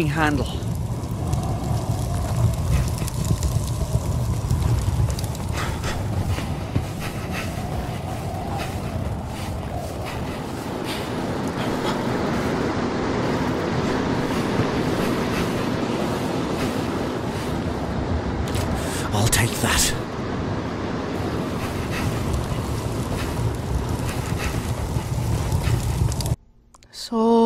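Strong wind roars and gusts steadily.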